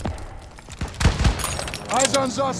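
A rifle is reloaded with metal clicks.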